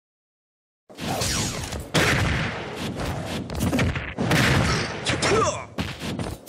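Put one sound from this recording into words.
Fighting game blows land with sharp smacks and whooshes.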